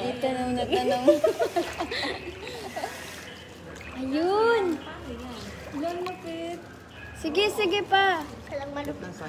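Young women laugh loudly close by.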